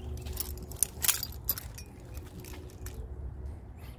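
A car door clicks open.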